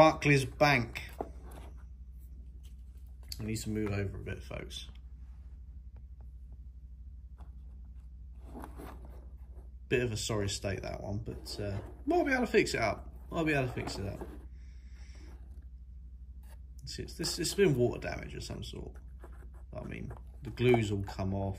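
A light cardboard model is set down and slid across a wooden tabletop.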